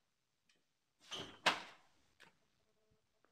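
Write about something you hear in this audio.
A metal door rattles and bangs as it is opened.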